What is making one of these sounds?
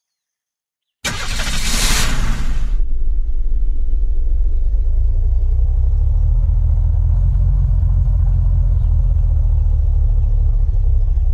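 A car engine starts with a burst and then rumbles steadily as the car drives.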